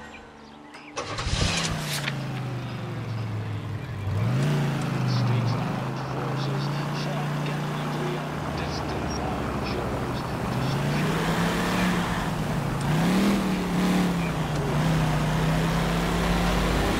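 A car engine hums, revving up and down.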